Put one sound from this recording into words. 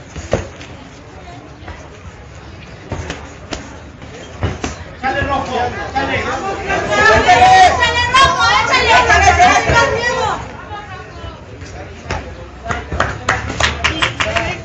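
Boxing gloves thud against bodies and gloves.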